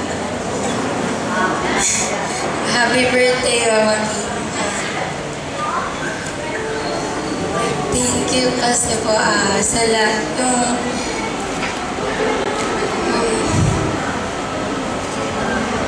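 A young woman speaks with animation into a microphone through loudspeakers.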